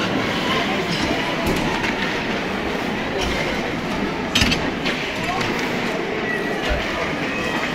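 Hockey sticks clack against a puck in a large echoing rink.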